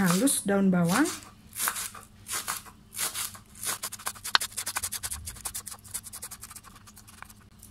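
A knife chops quickly through spring onions on a wooden board.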